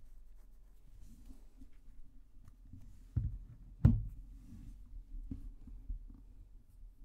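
Cards shuffle and tap together in a man's hands.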